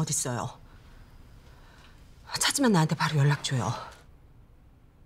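A middle-aged woman talks on a phone, close by.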